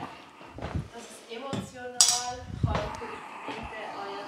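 A metal can clinks as it is set down on a wooden floor.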